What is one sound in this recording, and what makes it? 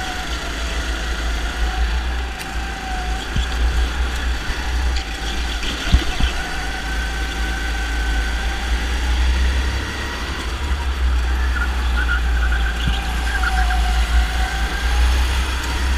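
Other go-kart engines whine nearby.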